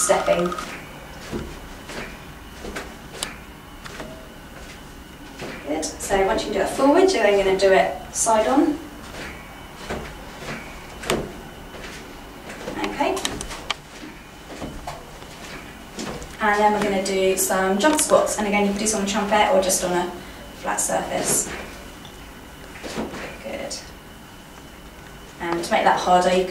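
A trampoline mat thumps and creaks softly under bare feet.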